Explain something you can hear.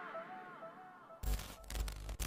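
A woman sings softly.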